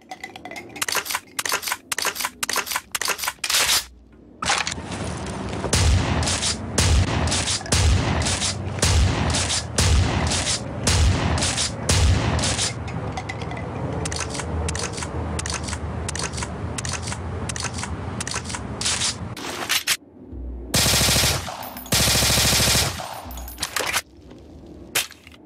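A gun's parts click and clack during reloading.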